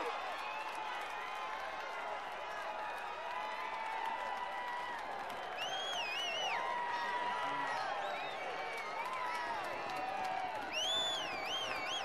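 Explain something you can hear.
A football thumps off a foot.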